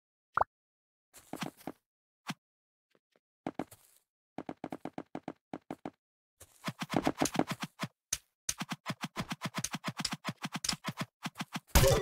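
Blocks snap into place in quick, even clicks.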